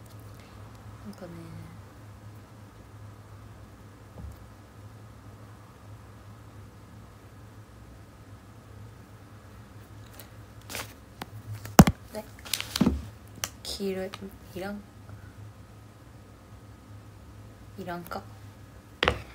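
A young woman speaks softly in short bursts, close to a microphone.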